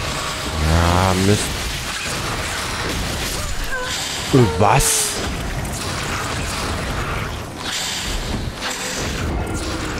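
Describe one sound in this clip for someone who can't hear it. A sword slashes and strikes with heavy thuds.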